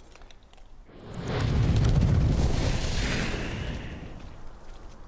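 A magical burst roars and whooshes loudly.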